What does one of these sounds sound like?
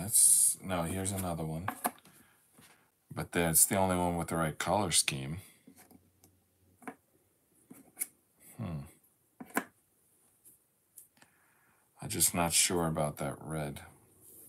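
Jigsaw puzzle pieces tap softly on a board as they are placed.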